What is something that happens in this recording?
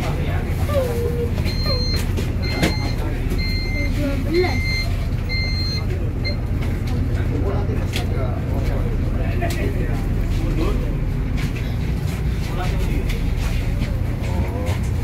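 A bus engine rumbles steadily.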